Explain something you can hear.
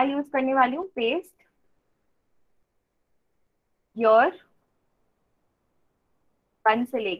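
A young woman speaks calmly into a microphone, as if on an online call, in short phrases with pauses.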